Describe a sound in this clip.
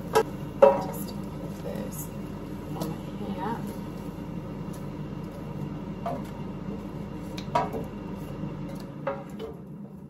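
Metal tongs clack against a basket.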